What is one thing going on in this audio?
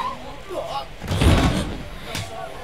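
A volleyball is spiked with a hard smack.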